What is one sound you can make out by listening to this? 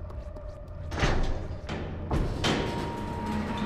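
A heavy metal gate slams down with a loud clang.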